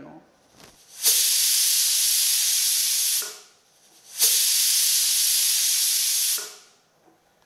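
A pressure cooker whistles, with two hissing bursts of steam.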